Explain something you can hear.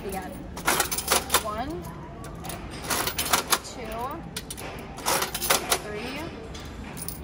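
Candy rattles down a chute inside a vending machine.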